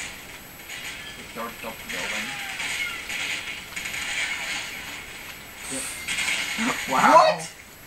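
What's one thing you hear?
Gunshots crackle from a television's speakers.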